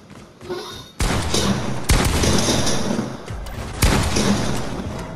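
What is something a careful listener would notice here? Gunfire blasts loudly and shatters building walls.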